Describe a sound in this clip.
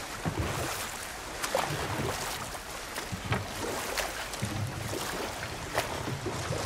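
Oars splash rhythmically in calm water.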